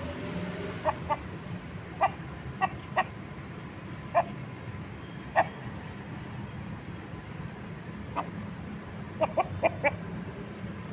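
A rooster clucks in short, sharp bursts close by.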